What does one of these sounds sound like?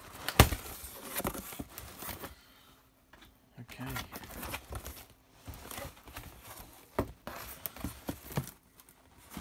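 Cardboard flaps thump and knock against each other.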